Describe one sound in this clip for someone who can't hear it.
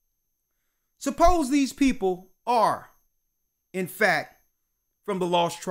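A man speaks with feeling into a close microphone, in bursts with pauses.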